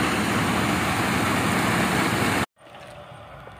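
Wet concrete rushes down a chute.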